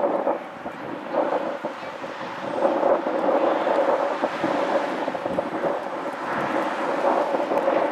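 Lacrosse sticks clack together during play.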